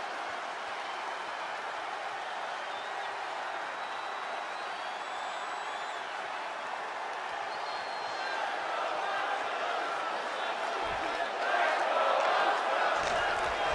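A large crowd cheers and roars in an echoing arena, growing louder toward the end.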